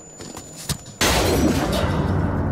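Sparks burst with a sudden crackling whoosh.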